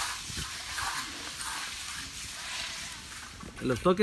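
A trowel scrapes across wet concrete.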